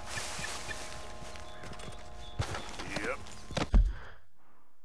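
A horse's hooves thud on the ground nearby.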